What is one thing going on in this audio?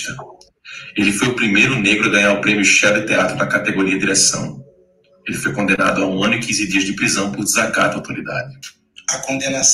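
A young man speaks calmly and earnestly over an online call.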